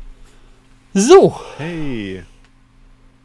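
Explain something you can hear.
A man laughs through a microphone.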